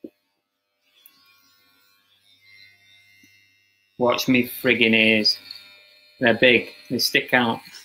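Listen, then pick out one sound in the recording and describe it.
Electric hair clippers buzz.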